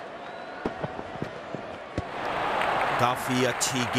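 A bat strikes a cricket ball with a sharp knock.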